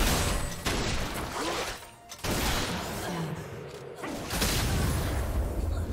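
Magic blasts and sword strikes crackle and whoosh in a fast fight.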